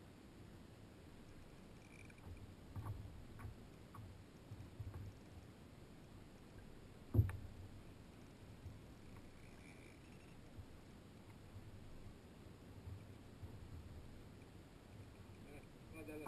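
Small waves lap against the hull of a kayak.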